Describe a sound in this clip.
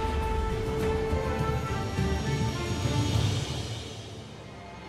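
A deep rushing whoosh sweeps past.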